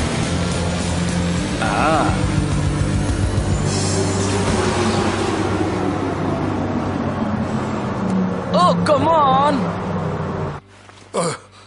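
A race car engine roars loudly.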